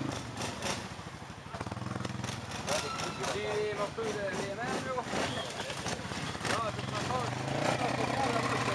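A snowmobile engine idles nearby with a low, steady rumble.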